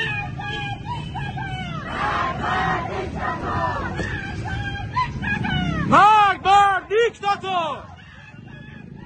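A crowd of men and women talk outdoors.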